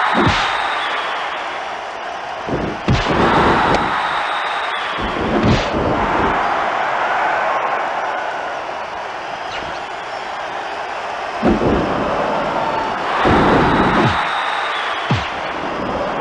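Heavy thuds of bodies slamming onto a wrestling mat ring out now and then.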